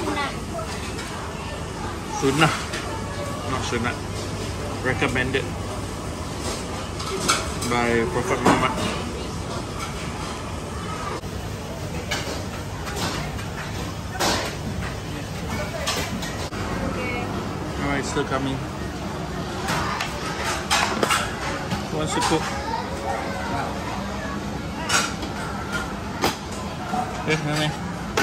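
A pot of broth simmers and bubbles on a hot plate.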